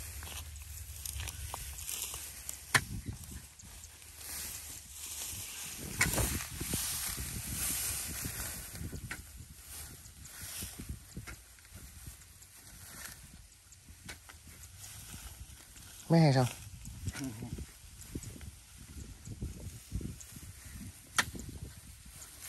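A hoe chops and scrapes into wet soil with dull thuds.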